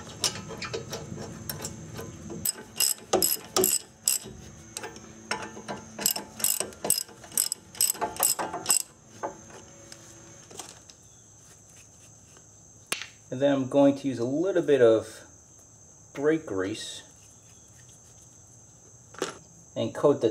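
Metal parts clink and tap as they are handled.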